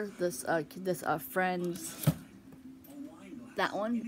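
A book slides out from a tightly packed shelf.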